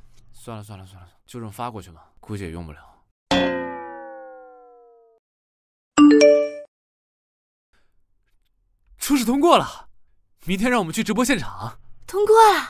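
A young man speaks close by, then exclaims with excitement.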